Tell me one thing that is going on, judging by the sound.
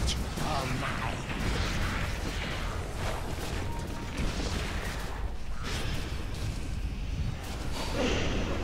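Magic spells whoosh and crackle during a fight.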